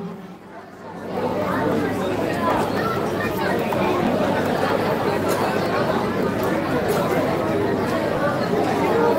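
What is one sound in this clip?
Many men chatter in a crowd.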